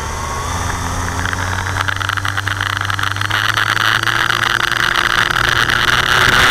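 A small engine runs nearby, its whine slowly rising and growing louder.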